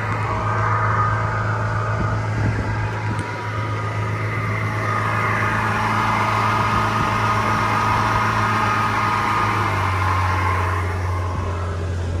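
Water rushes and splashes behind a speedboat.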